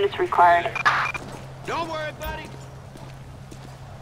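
Pistol shots ring out.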